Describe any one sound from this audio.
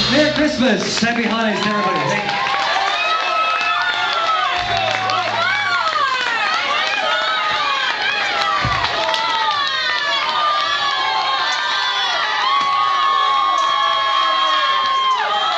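Electric guitars wail and squeal loudly with gliding, screeching feedback.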